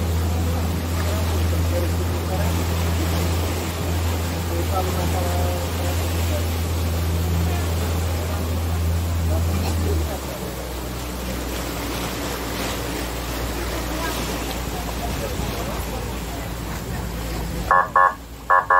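Water churns and splashes in the boat's wake.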